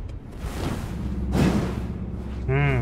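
A sword swings through the air with a sharp whoosh.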